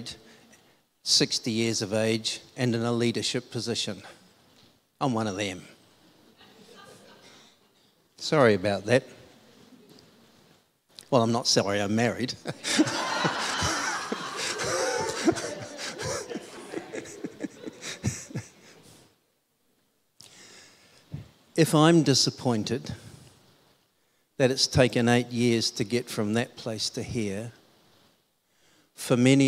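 A middle-aged man speaks with animation through a microphone in an echoing hall.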